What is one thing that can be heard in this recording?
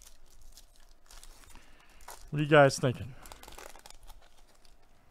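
A foil card wrapper crinkles and tears as hands open it.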